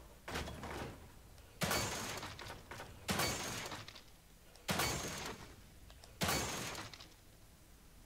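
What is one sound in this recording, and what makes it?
Gunshots fire loudly at a steady pace, each followed by a short echoing tail.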